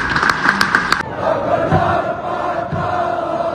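A large stadium crowd chants and cheers.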